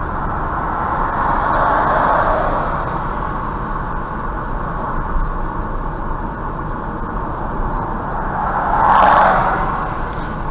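A car passes close by with a rising and fading whoosh.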